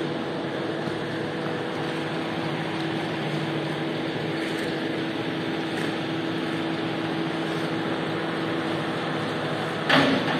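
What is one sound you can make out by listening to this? Rubber boots splash and squelch across a wet floor.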